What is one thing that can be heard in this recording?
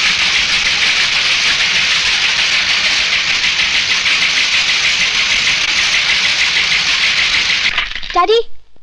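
A printing press clatters and whirs steadily.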